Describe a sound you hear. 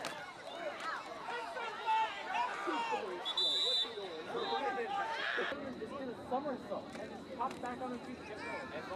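Young players shout and call out outdoors.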